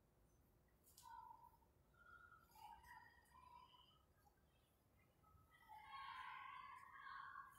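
A man speaks softly and slowly, a little way off, in an echoing room.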